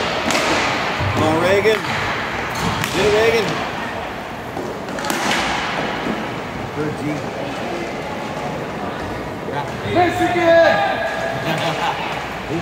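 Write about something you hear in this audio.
Skates scrape on the rink surface.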